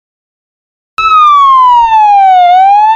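An ambulance siren wails up close.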